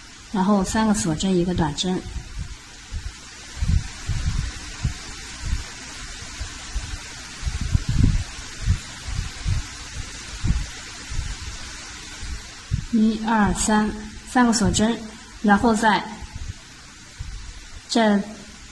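A crochet hook softly rustles and tugs through yarn.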